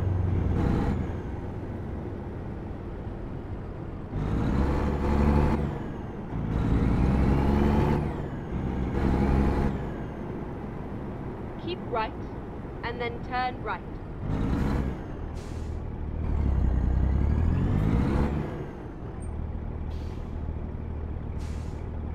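A truck engine rumbles steadily and rises and falls in pitch as it speeds up and slows down.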